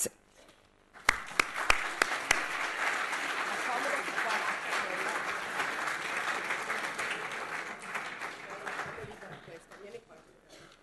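An audience applauds steadily, then the clapping fades out.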